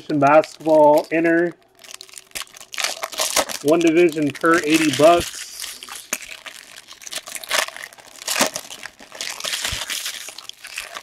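Foil wrappers crinkle and tear as packs are opened.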